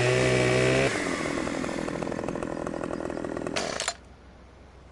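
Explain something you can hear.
A chainsaw engine revs loudly, then cuts off.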